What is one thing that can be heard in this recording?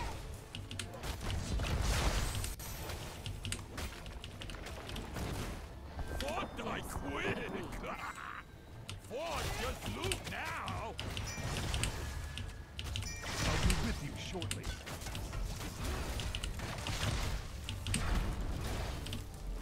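Game battle effects clash and burst.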